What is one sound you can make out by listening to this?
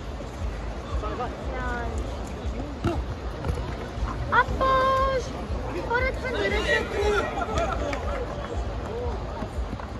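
Men shout and call out across an open court.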